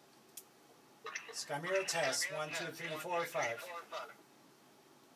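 A middle-aged man speaks into a handheld radio.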